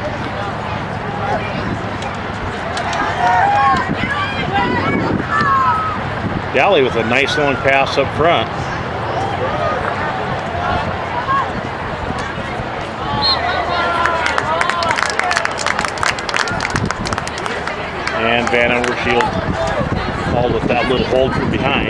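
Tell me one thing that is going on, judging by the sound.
Young players shout to one another across an open outdoor field.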